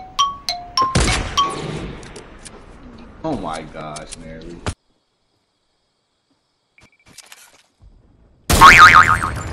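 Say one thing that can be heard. A sniper rifle fires a loud, sharp shot.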